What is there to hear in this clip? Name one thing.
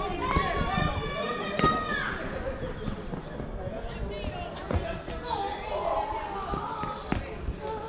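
Young men call out and chatter across an open outdoor field.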